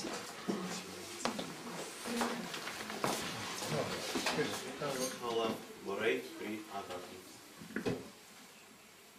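Several people talk and move about.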